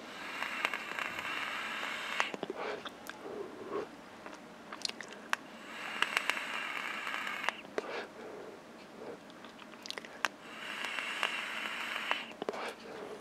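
An electronic cigarette hisses and crackles softly as it is puffed.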